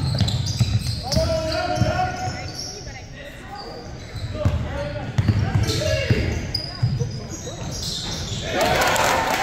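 Basketball shoes squeak sharply on a gym floor.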